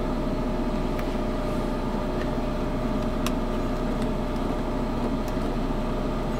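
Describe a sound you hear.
Meter probes tap and click against metal terminals.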